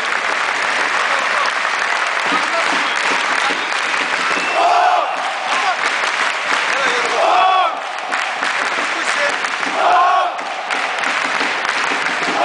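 A large stadium crowd chants and cheers loudly, outdoors.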